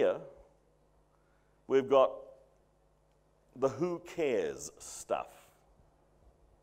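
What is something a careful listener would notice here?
A middle-aged man speaks through a microphone in a large room, pausing between phrases.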